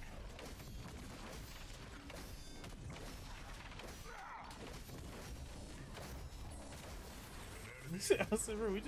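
Rapid game gunfire and blasts crackle.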